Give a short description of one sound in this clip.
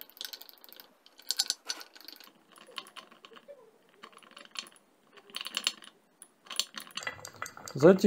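A stick stirs a thick paste, scraping and clicking against a glass jar.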